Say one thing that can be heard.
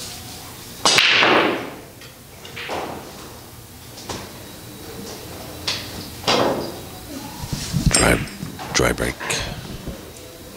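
Pool balls knock against each other and against the cushions as they roll.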